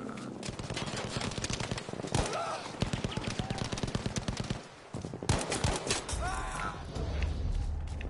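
Rifle shots crack close by, several in quick succession.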